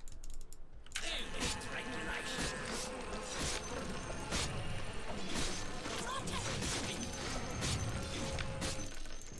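Video game combat effects clash, thud and crackle.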